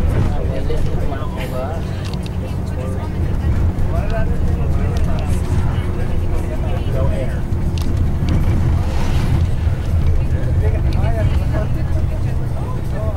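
A diesel coach engine drones, heard from inside the coach as it drives along a road.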